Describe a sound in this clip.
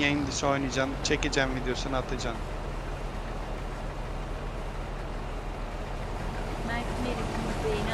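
A combine harvester hums while cutting grain.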